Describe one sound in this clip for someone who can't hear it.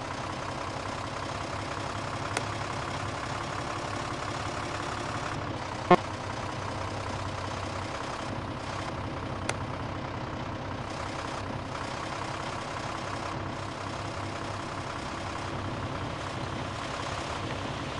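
A truck engine hums steadily while driving.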